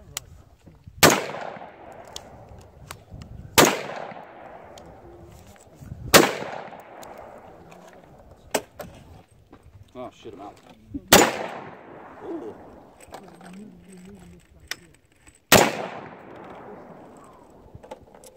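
A rifle fires single loud shots outdoors, each echoing off into the distance.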